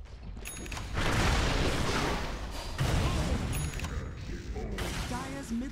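A spell explodes with a loud rushing blast.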